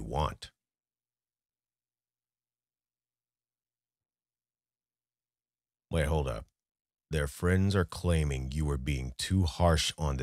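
A young man speaks close into a microphone.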